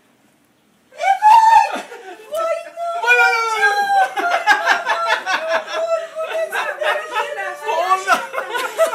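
An elderly woman cries out and sobs loudly with emotion close by.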